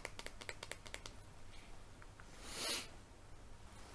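Taps and clicks sound on a phone close by.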